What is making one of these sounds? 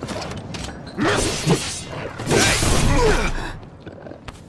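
A sword slashes and clangs against metal.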